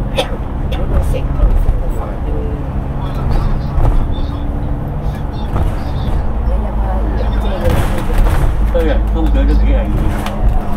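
A bus engine rumbles steadily at speed.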